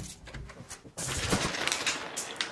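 Glass marbles roll and clack on a wooden floor.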